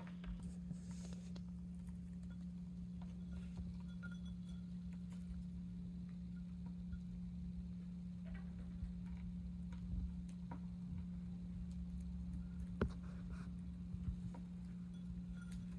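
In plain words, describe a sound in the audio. A budgie pecks at seeds in a glass bowl with small clicks.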